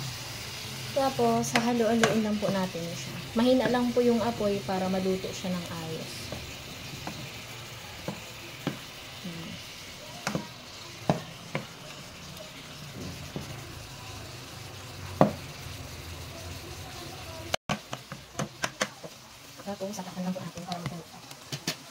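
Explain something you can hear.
A wooden spatula scrapes and knocks against a pot.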